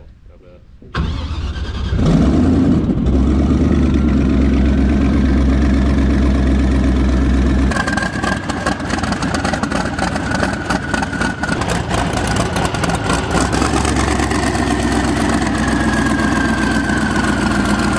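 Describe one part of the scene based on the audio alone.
An airboat engine starts and roars loudly and steadily.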